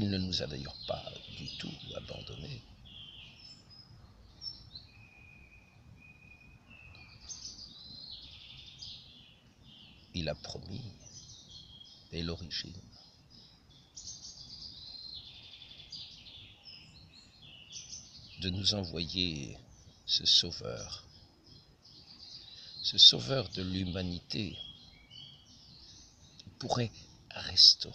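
An elderly man speaks close by, calmly, in short bursts with pauses.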